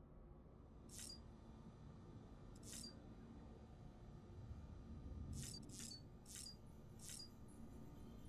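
Soft electronic chimes beep a few times.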